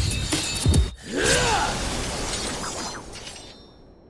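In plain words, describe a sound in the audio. A blade swishes and clangs.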